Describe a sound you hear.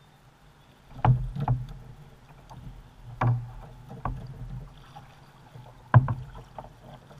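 A paddle knocks against the hull of a plastic kayak.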